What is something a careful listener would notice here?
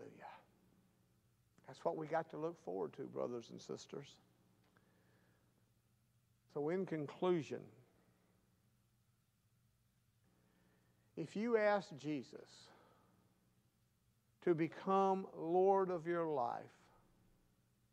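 A middle-aged man speaks calmly and deliberately into a microphone, pausing between phrases.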